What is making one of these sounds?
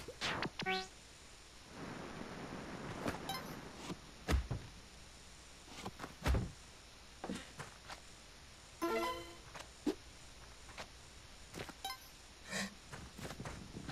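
Short game sound effects chime, thud and click again and again.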